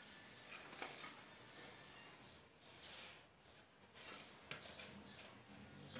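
Potting soil pours out of a plastic pot and patters onto concrete.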